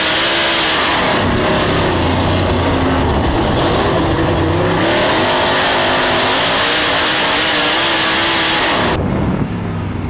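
Several race car engines roar and whine close by.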